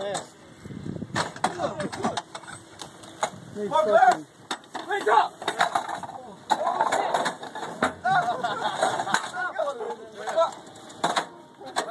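Metal parts clank and knock as men handle a heavy gun.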